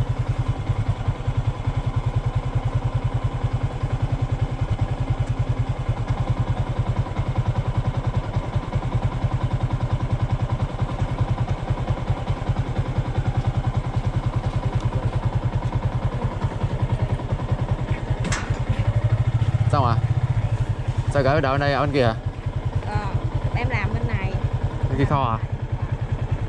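A motorcycle engine idles with a steady low putter.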